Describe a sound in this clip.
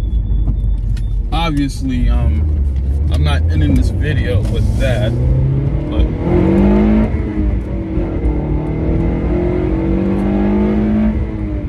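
A car engine and road noise rumble low and steady.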